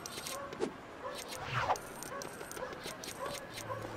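Plastic bricks clatter as an object breaks apart.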